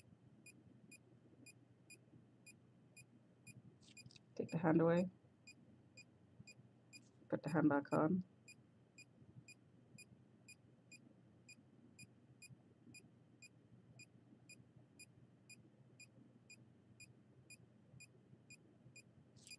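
A small electronic meter beeps softly in a quick, steady rhythm.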